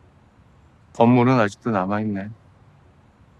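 A middle-aged man speaks quietly and briefly nearby.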